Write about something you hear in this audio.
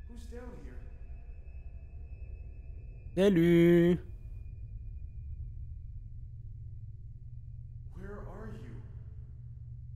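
A man speaks briefly and quietly through a microphone.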